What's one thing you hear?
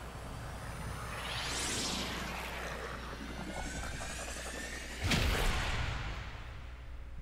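A spaceship roars past with a rushing whoosh.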